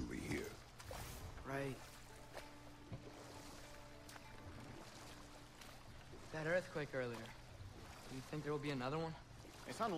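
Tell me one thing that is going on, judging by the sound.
Oars splash and paddle through water.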